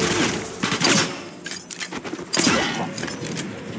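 A silenced pistol fires with a sharp muffled pop.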